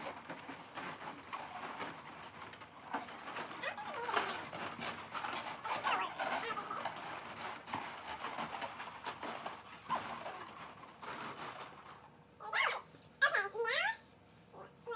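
Rubber balloons rub and squeak against each other as they are moved.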